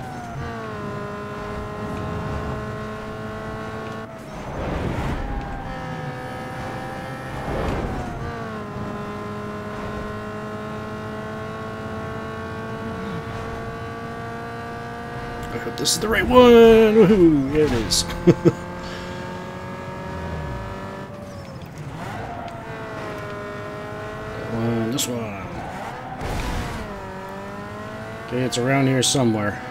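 A racing car engine roars at high speed, shifting gears as it rises and falls.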